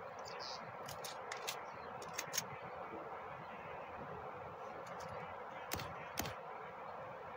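A gun's mechanism clicks sharply several times.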